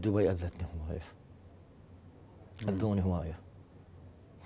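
A man speaks calmly into a close microphone, in short phrases.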